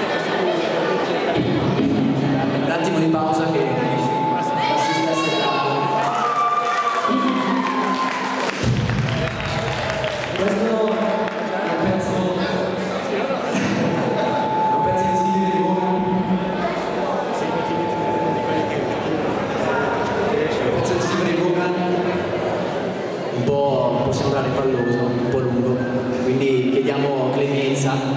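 Electric guitars play loudly through amplifiers.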